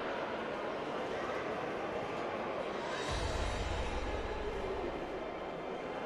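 A sword slides into its scabbard with a soft click.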